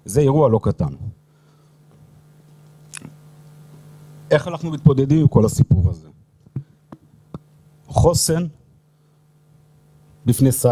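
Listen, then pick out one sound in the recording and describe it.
An older man speaks calmly through a microphone in a large echoing hall.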